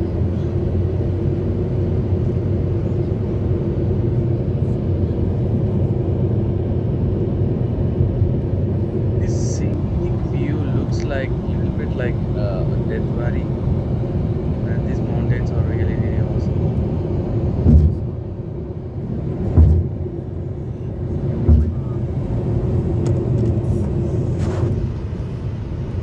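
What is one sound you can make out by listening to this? Tyres roar steadily on a highway from inside a moving car.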